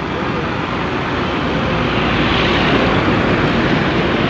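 A truck drives past on a road.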